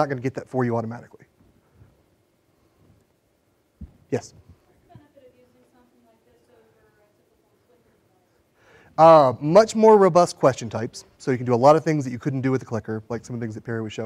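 A middle-aged man speaks with animation through a microphone to an audience.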